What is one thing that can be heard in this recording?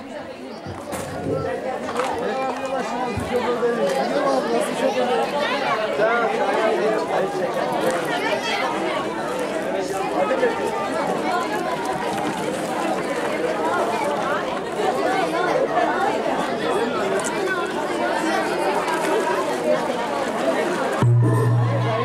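A crowd of men and women chatter loudly all around, outdoors.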